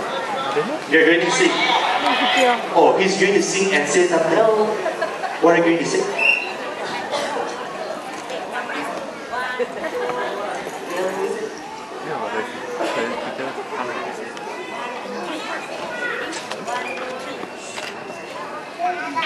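A woman speaks into a microphone, heard through loudspeakers.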